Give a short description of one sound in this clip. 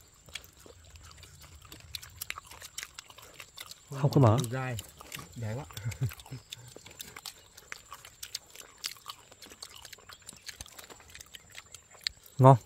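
Food crackles and rustles as men eat with their hands.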